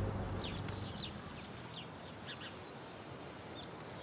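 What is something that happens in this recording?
Footsteps rustle through low undergrowth outdoors.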